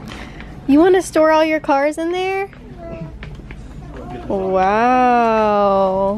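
Small wheels roll across a smooth floor.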